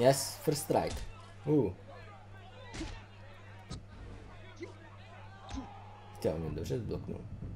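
Cartoonish punches land with heavy thuds.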